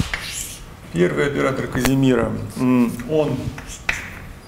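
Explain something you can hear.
A young man speaks calmly, in a room with some echo.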